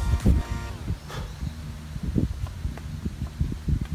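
A putter taps a golf ball softly.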